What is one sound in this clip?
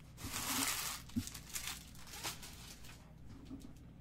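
Plastic wrapping crinkles and rustles as it is torn off.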